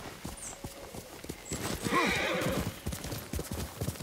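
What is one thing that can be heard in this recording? Horse hooves thud on soft ground.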